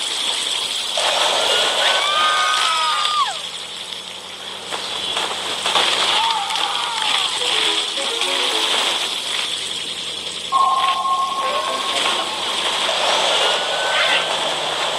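Electronic game tones chime and sweep up and down.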